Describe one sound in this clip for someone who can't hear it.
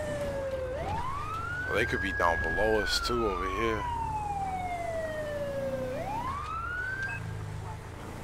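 A siren wails, rising and falling in pitch.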